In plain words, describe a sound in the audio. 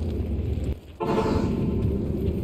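A magic portal whooshes and hums.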